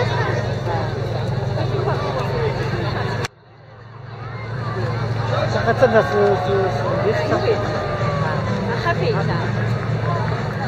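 A crowd of men and women chatters outdoors on a busy street.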